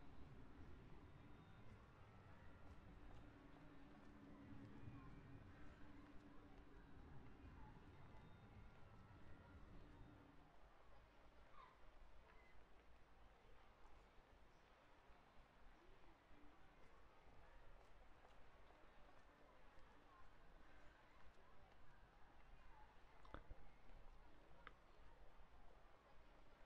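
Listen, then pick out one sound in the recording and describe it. A busy crowd murmurs and footsteps shuffle outdoors.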